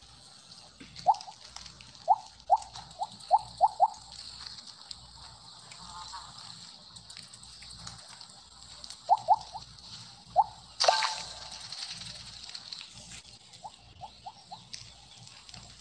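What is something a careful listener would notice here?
Short bright blips sound in quick runs, like a game's pickup chimes.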